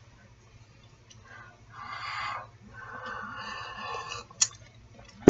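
A woman sips a drink from a mug.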